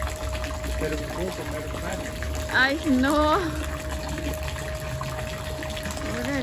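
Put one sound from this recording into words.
A thin stream of water splashes steadily into a shallow pool.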